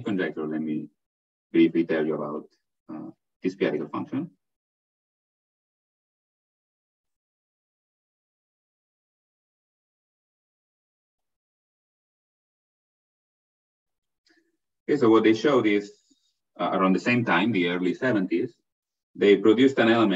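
A man lectures calmly through an online call, pausing at length.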